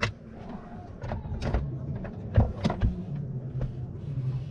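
Wooden panels knock and rattle as a hand moves them.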